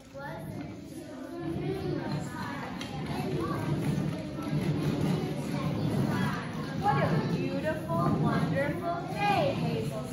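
Children speak and call out excitedly in a large echoing hall.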